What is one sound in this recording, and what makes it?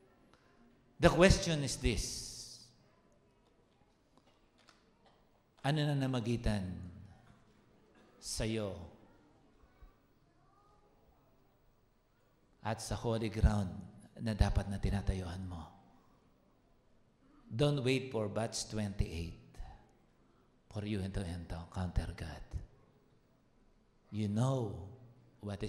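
A man speaks with animation into a microphone through loudspeakers, in bursts with pauses, in a large echoing hall.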